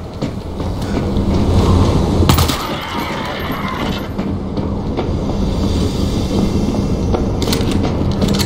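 Footsteps clank on a metal grating floor.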